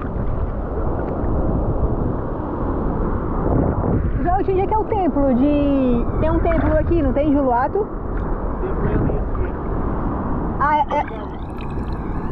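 Water sloshes and laps close by.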